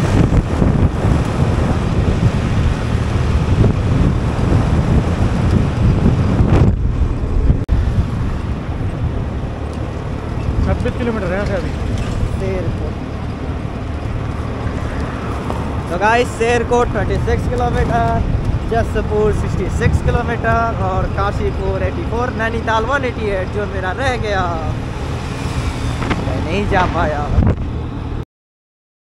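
Wind roars and buffets steadily on a moving motorcycle.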